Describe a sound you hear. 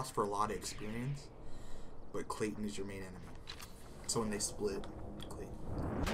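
A man speaks gruffly, close by.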